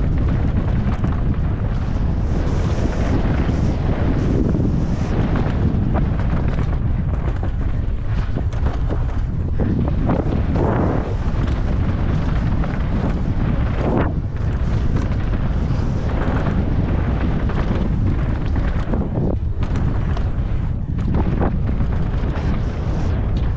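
A bicycle rattles and clatters over rough ground.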